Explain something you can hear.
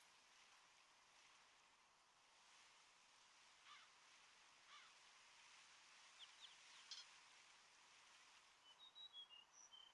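Water laps softly against a shore.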